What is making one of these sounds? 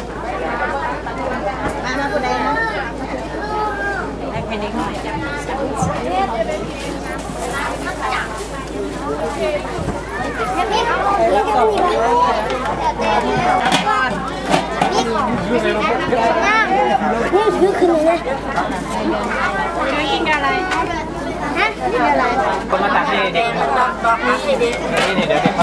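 A crowd of children and adults chatter all around outdoors.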